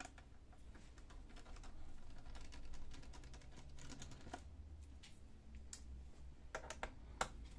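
A screwdriver turns screws with faint scraping.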